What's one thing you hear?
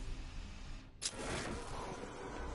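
A sharp electronic whoosh sweeps in.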